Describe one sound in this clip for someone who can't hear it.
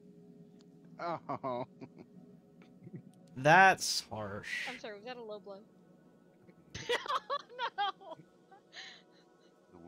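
Young men talk and laugh over an online call.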